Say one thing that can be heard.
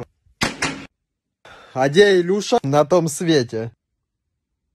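A young man speaks close to a microphone in a comic, exaggerated voice.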